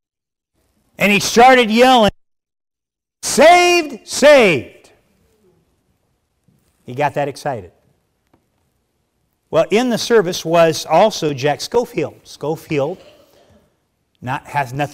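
A middle-aged man preaches with animation through a microphone, in bursts with pauses.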